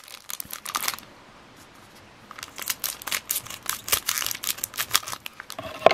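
Scissors snip through foil packs.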